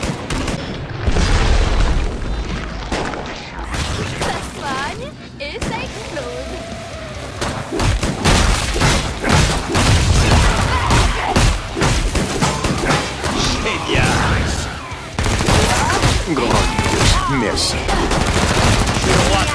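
Guns fire rapidly in loud bursts.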